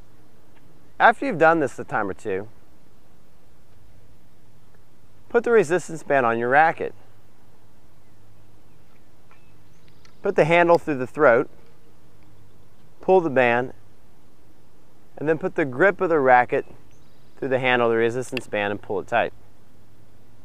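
A young man speaks calmly and clearly into a microphone, outdoors.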